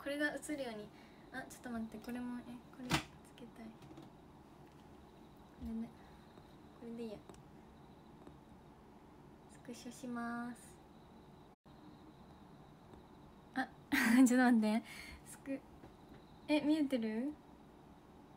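A young woman talks softly and cheerfully close to a microphone, with pauses.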